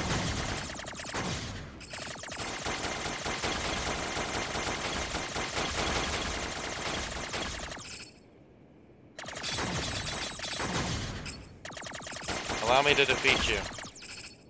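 Rapid electronic laser shots zap from a game.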